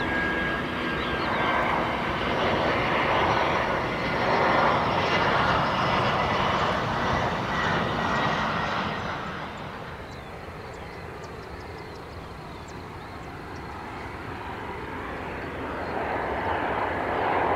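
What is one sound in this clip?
A jet airliner roars loudly as it flies low overhead on approach.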